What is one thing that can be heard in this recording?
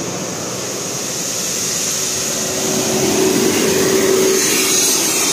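A bus engine rumbles and grows louder as the bus passes close by.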